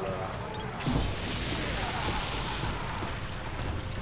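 An energy beam crackles and hisses.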